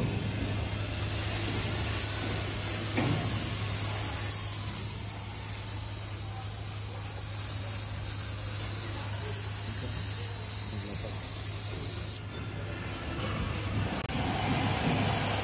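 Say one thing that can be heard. An aerosol can sprays with a loud, steady hiss.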